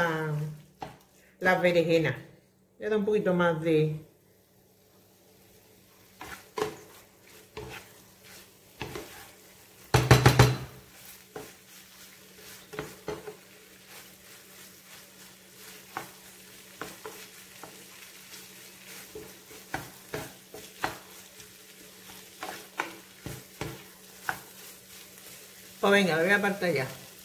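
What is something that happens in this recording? A plastic spatula scrapes and stirs minced meat in a glass pan.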